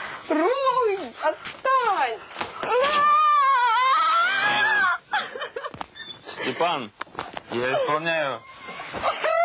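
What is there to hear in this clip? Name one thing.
A young woman shrieks and squeals loudly and playfully, close by.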